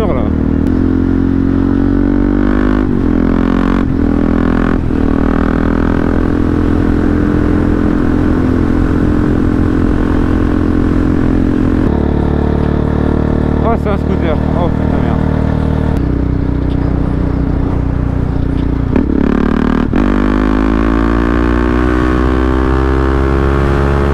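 A motorcycle engine drones steadily, rising and falling in pitch as the rider shifts gears.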